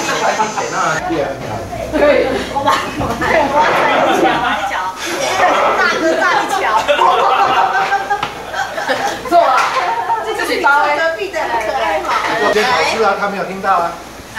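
A group of men and women laugh and chatter together.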